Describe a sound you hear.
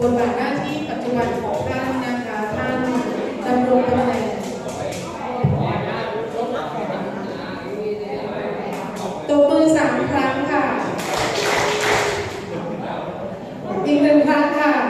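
A man speaks steadily through a microphone in an echoing hall.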